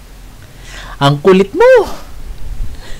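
A man laughs into a headset microphone.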